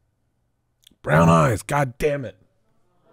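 A man exclaims loudly into a close microphone.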